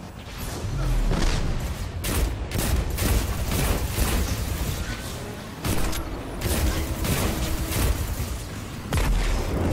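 Heavy explosions and energy blasts boom.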